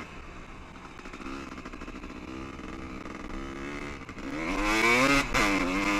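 Tyres crunch over sandy dirt.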